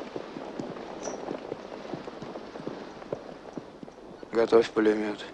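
A herd of horses shuffles and stamps nearby.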